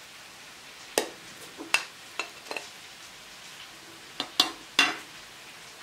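A china plate clinks against a baking dish.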